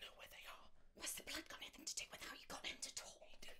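A young woman speaks up close, sounding upset.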